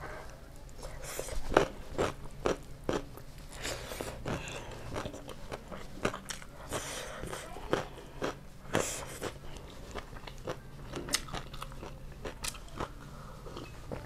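A woman chews food loudly and wetly up close.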